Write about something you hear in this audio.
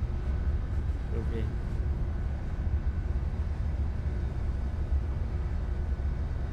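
A machine hums low and steadily.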